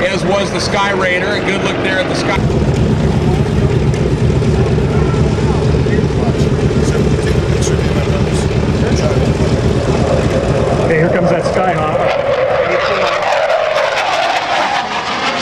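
A jet engine roars loudly overhead and sweeps past.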